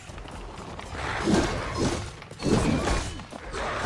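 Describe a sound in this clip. A wolf snarls and growls up close.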